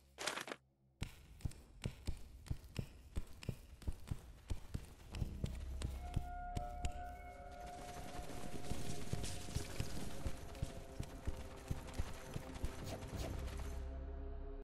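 Footsteps patter quickly and steadily on stone as a creature runs.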